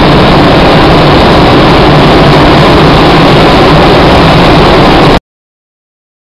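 A car engine roars loudly at speed.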